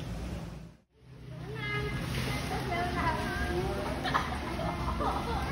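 Water splashes as people swim in a pool.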